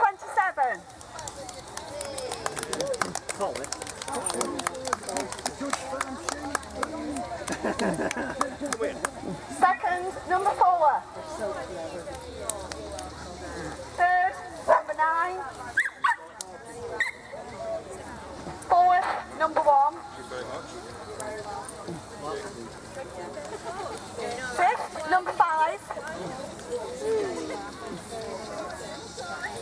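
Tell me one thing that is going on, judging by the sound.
A crowd chatters outdoors in the background.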